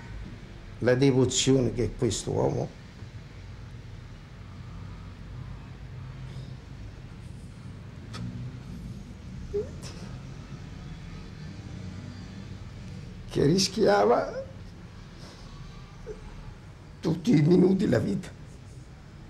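A middle-aged man speaks calmly in short bursts, close by.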